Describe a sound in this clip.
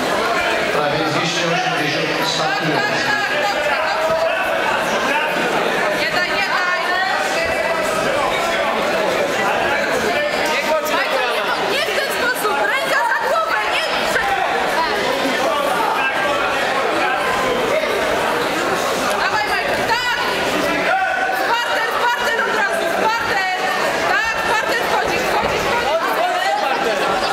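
A crowd of spectators chatters throughout a large echoing hall.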